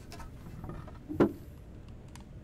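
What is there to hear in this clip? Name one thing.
A loose piece of wood is pulled off a wall with a knock.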